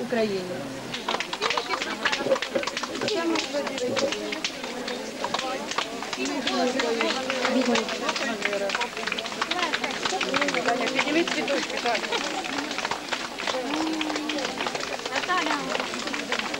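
A crowd outdoors claps steadily.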